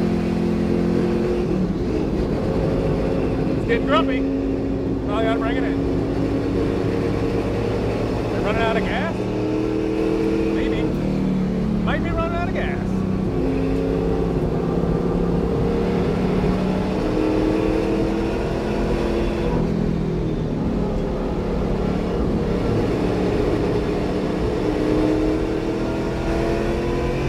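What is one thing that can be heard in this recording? A racing car engine roars loudly, its pitch rising and falling as it revs.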